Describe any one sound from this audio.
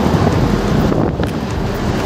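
A truck roars past close by.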